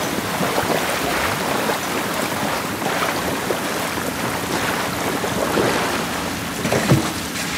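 A person wades and splashes through water.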